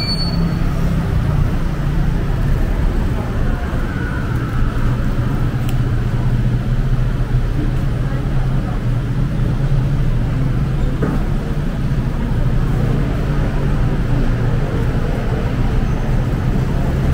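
Traffic hums steadily along a nearby street outdoors.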